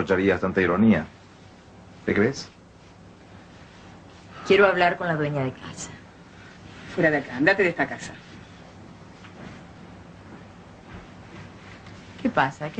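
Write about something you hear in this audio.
A man speaks with emotion, close by.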